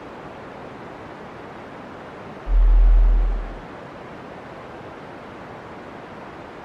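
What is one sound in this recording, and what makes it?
Steam hisses steadily from a vent in the ground.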